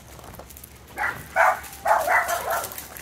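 A dog barks loudly several times close by.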